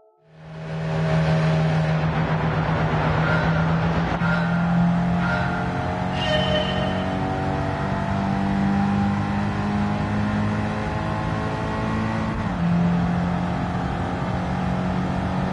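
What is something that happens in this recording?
A racing car engine roars steadily at speed.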